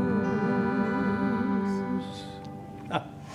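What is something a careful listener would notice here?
A small folk band plays a final chord on guitars and strings.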